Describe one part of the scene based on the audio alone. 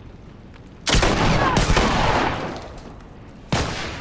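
Gunshots crack close by.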